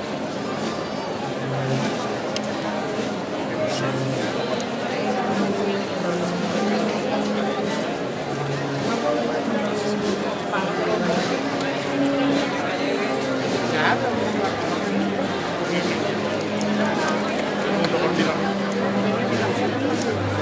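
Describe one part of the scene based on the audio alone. A large crowd murmurs and chatters outdoors.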